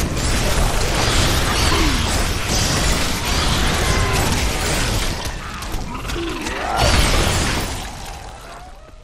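Monsters shriek and roar during a fierce battle.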